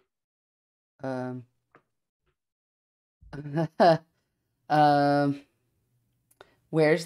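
A man speaks over an online call in short, drawn-out bursts, with pauses between.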